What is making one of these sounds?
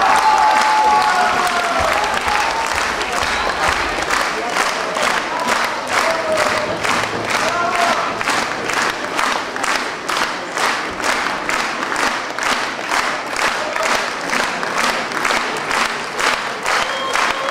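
A large audience applauds in a big hall, the clapping soon falling into a steady rhythm.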